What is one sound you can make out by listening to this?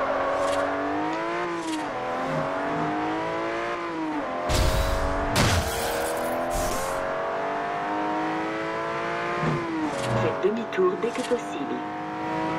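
A high-revving car engine climbs in pitch and drops briefly with each gear change.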